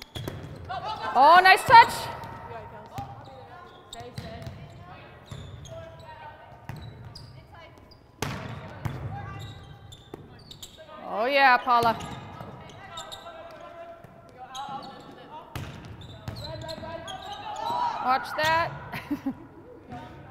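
Young women shout calls to each other across the court.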